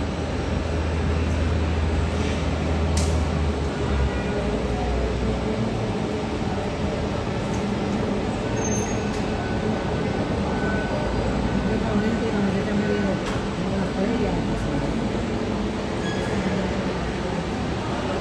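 A jet airliner's engines hum and whine steadily as it taxis slowly nearby.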